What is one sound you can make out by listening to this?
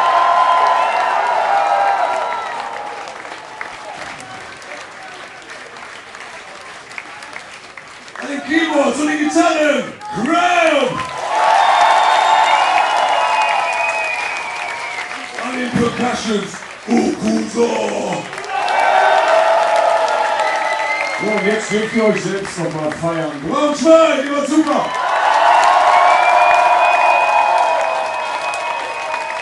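A large crowd cheers and whistles in an echoing hall.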